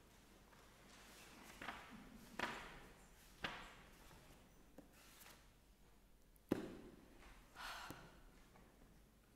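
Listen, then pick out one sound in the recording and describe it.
A piano plays soft chords in an echoing hall.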